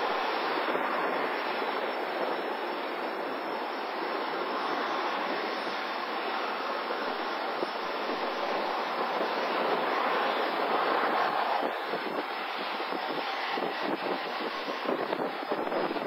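A jet airliner's engines roar loudly overhead as it climbs and banks away.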